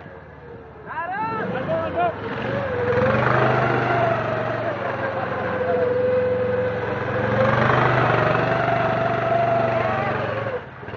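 A small buggy engine revs loudly, rising and falling in pitch as it circles close by.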